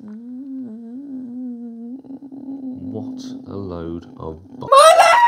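A young woman hums a long, wavering note close by.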